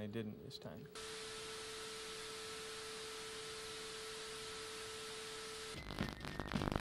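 A steady test tone beeps from a television.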